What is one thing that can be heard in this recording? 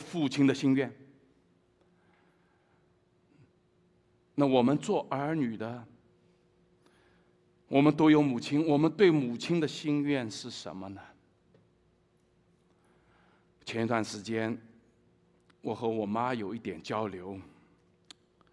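A middle-aged man speaks with animation through a microphone in bursts, with pauses between.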